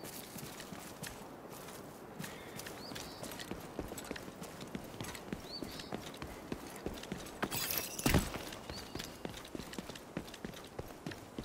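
Boots thud quickly on hard ground as a person runs.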